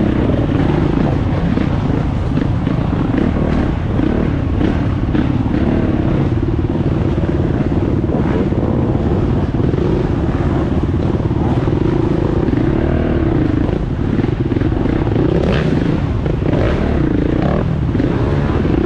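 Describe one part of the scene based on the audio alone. Other dirt bike engines buzz and rev nearby.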